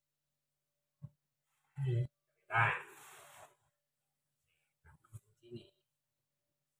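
A body shifts and thumps on a padded mat.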